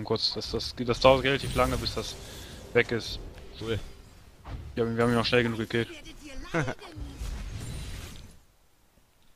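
Game spell effects burst and clash in a fight.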